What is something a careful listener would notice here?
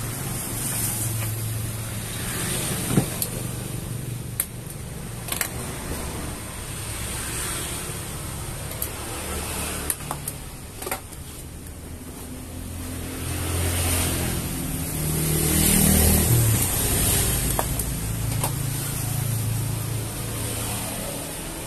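A stiff vinyl seat cover rustles and crinkles as it is handled.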